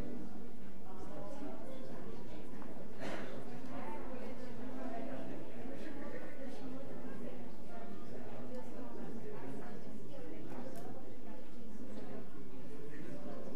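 People shuffle and stand up from wooden benches.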